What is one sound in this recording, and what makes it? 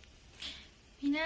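A young woman speaks close to a phone microphone.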